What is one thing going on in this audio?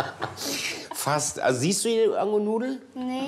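A young boy speaks calmly into a microphone.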